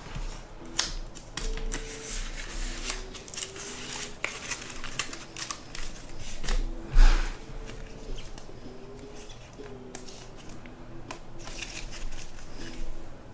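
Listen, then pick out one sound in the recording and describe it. Trading cards rustle and click as they are shuffled by hand, close by.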